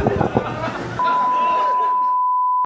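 A steady high test tone sounds.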